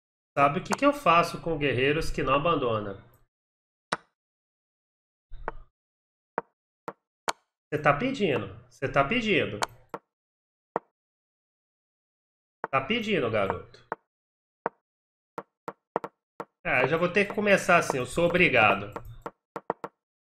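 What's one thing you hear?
A man speaks with animation close to a microphone, in short bursts with pauses.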